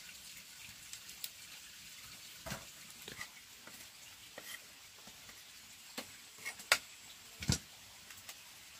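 A fire crackles under a pot.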